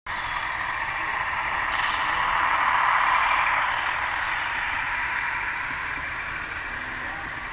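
A model train's wheels rumble and whir along the track close by.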